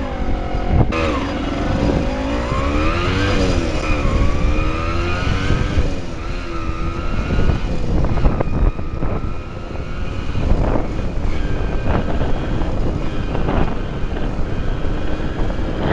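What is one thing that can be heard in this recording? Wind rushes and buffets loudly.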